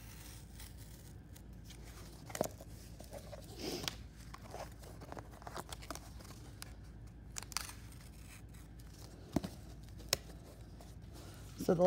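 Cardboard rustles and scrapes as hands handle it.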